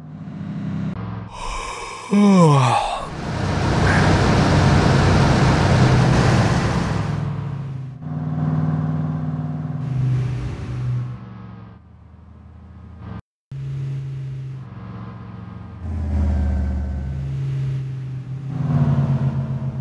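A truck engine rumbles steadily and changes pitch as it shifts gears.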